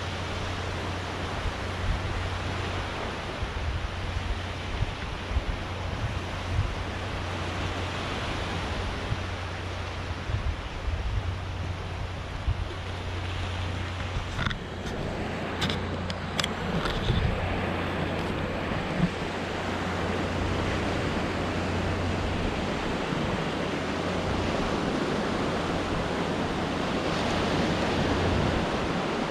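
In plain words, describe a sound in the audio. Small waves wash onto a beach nearby.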